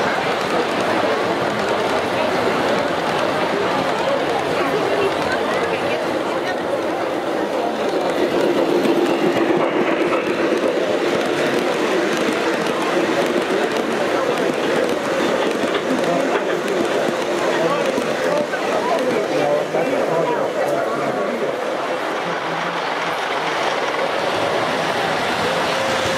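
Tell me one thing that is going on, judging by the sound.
Model train cars rumble and clatter along metal tracks close by.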